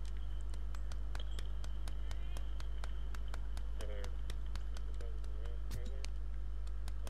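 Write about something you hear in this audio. A goose's feet patter quickly on hard ground.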